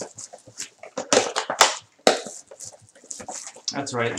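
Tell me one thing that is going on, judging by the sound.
A cardboard box flap tears open.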